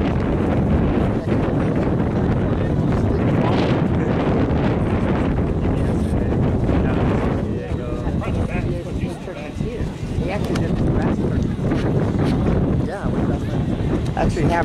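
Wind blows hard across an open field.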